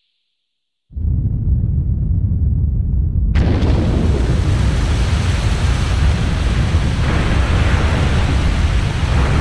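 Roaring energy bursts out with a loud rushing sound.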